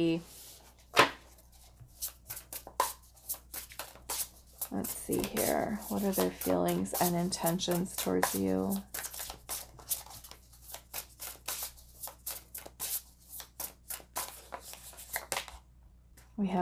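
Playing cards are shuffled with quick, riffling snaps.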